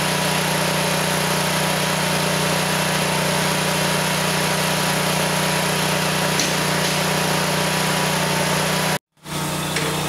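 An engine runs with a steady, loud drone.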